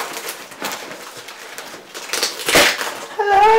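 Bubble wrap crinkles and rustles.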